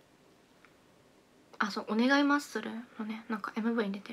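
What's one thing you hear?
A young woman chews food close by.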